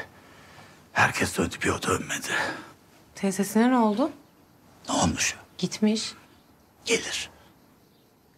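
A middle-aged man speaks in a low, serious voice, close by.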